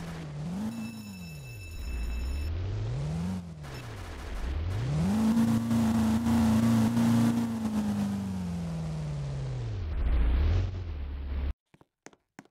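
A fire truck engine revs up and down as it drives.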